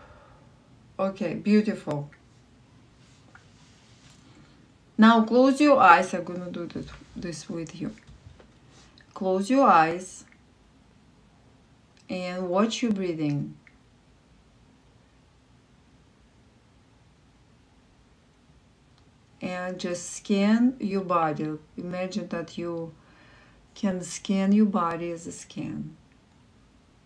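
A woman sings short melodic phrases close by, with pauses between them.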